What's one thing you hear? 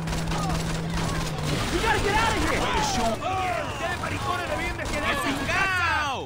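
A car crashes into another car with a thud.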